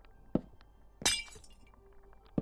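Glass breaks with a brief crackle.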